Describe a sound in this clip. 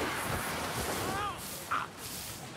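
A magical blast bursts with a fizzing hiss.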